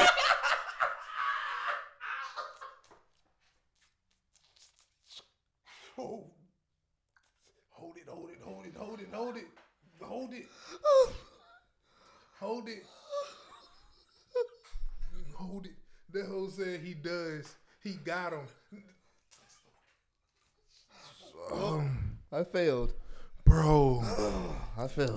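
Two men laugh loudly close to microphones.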